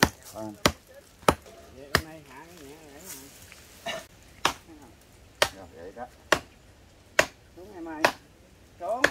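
A machete chops into a tree trunk with sharp knocks.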